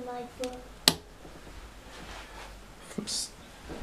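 A light box is set down with a soft knock on a hard surface.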